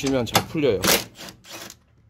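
A cordless impact driver whirs and rattles on a bolt.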